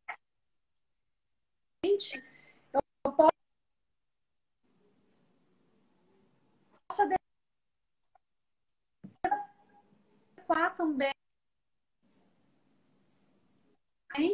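A young woman talks with animation over an online call, in short bursts with pauses.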